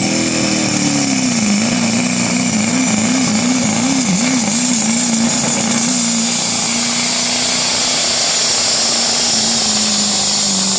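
A diesel truck engine roars loudly and strains under heavy load, its pitch wavering.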